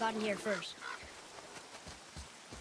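Footsteps thud softly on earth.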